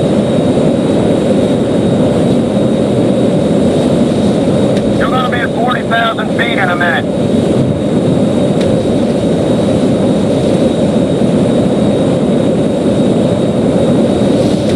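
A jet engine roars steadily as a plane flies low.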